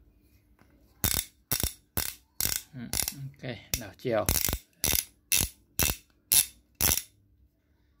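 A ratchet wrench clicks sharply as it is turned by hand.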